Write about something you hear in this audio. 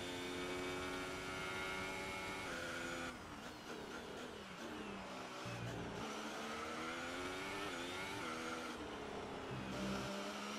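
A racing car engine screams at high revs, dropping in pitch as it slows for a corner and rising again as it speeds up.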